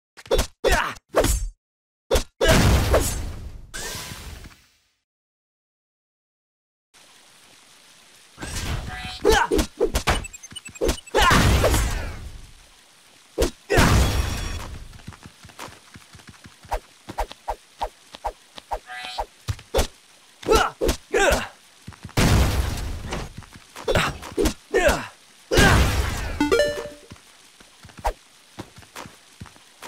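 Swords clash and slash in a game fight.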